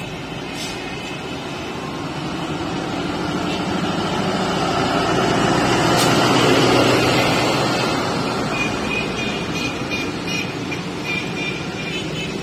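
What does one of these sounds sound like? Train wheels clatter over the rails as carriages roll past.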